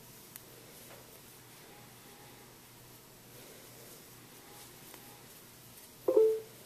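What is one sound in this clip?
A crochet hook softly clicks and scrapes through yarn.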